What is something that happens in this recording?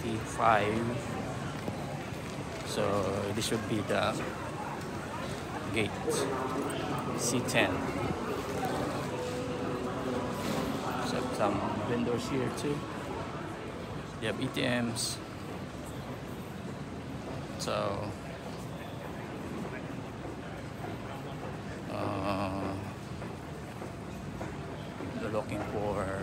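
Suitcase wheels roll on a hard floor.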